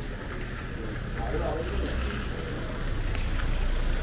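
Tyres hiss on a wet street.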